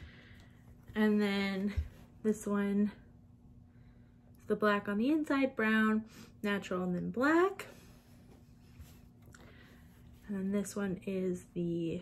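A young woman talks calmly and closely, with animation.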